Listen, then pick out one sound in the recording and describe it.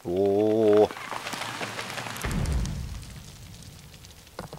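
A deep explosive rumble swells and then fades.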